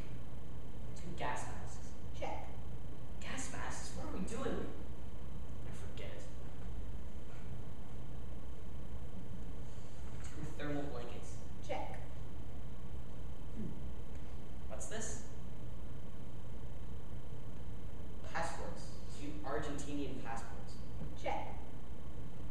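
A young man speaks in short bursts with long pauses, heard through a microphone.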